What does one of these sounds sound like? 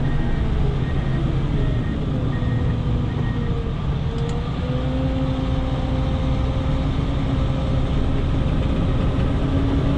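Snow scrapes and hisses under a plow blade.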